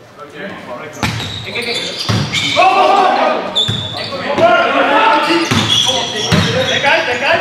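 A volleyball is struck hard several times.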